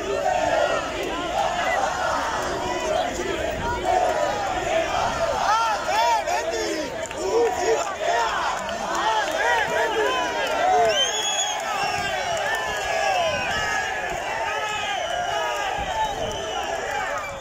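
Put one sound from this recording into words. A large crowd shouts and jeers loudly outdoors.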